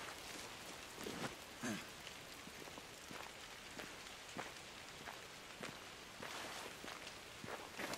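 Footsteps splash through puddles.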